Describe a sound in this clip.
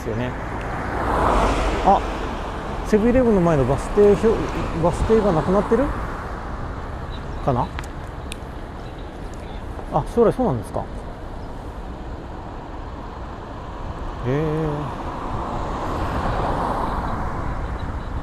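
A car drives past close by on a road.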